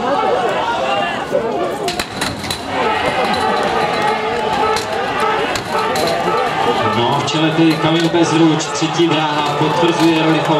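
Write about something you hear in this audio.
A crowd of spectators cheers and shouts loudly outdoors.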